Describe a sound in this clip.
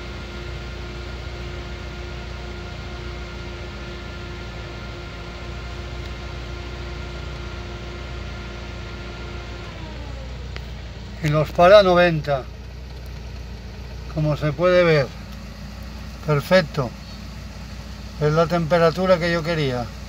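A car engine idles with a steady hum, then slows to a lower pitch.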